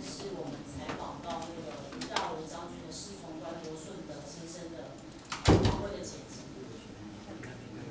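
A young woman speaks calmly into a microphone, heard through a loudspeaker in an echoing room.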